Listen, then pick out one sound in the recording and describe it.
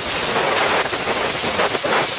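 An arc welder crackles and hisses.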